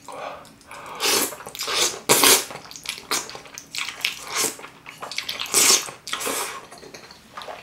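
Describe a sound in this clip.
A man slurps noodles loudly, close up.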